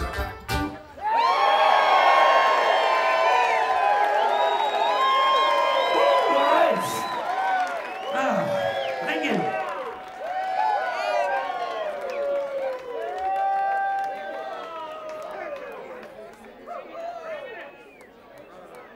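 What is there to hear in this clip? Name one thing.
A crowd cheers, whoops and whistles loudly.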